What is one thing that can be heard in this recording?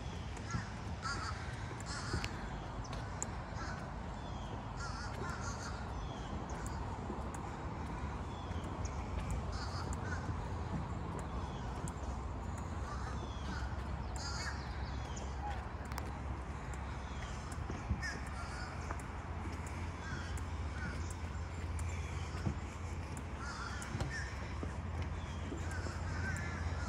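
Footsteps thud slowly on wooden boards.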